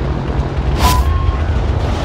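A burning plane's engine roars and crackles.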